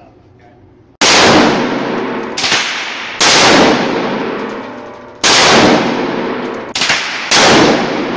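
A rifle fires loud shots one after another, booming through an echoing indoor range.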